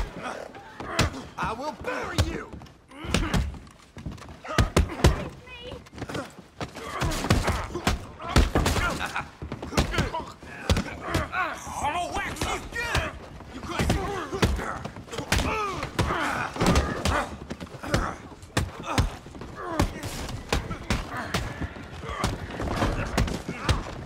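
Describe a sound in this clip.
Men shout and grunt while fighting nearby.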